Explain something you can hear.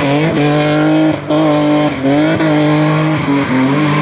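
Tyres squeal on asphalt.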